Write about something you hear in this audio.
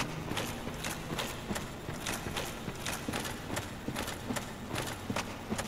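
Armoured footsteps clank quickly and steadily on stone.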